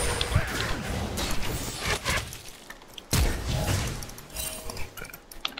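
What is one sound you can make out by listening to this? Magic attacks whoosh and crackle in a fight.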